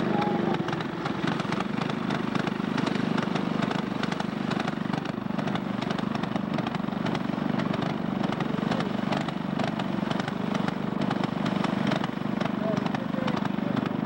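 Small kart engines run and rattle close by.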